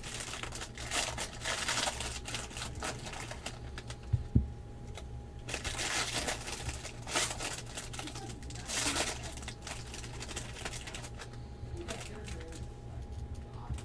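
Plastic wrapping crinkles and rustles as it is handled close by.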